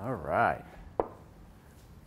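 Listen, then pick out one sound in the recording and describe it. A bowl is set down on a counter with a knock.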